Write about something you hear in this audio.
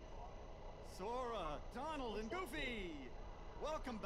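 A man exclaims theatrically in a lively, sing-song voice.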